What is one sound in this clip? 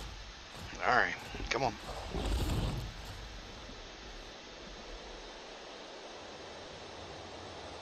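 A large creature's wings flap as it flies.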